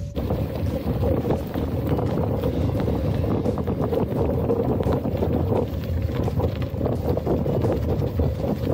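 Bicycle tyres crunch and rattle over loose gravel.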